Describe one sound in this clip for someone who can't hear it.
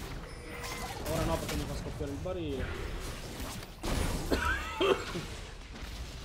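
A young man talks with animation into a headset microphone.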